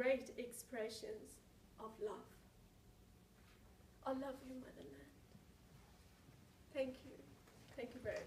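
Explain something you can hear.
A young woman speaks calmly, a short way off.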